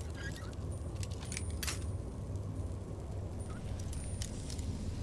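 A metal lockpick scrapes and clicks inside a lock.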